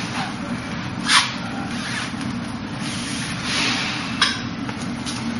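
Clothing swishes sharply with quick body movements.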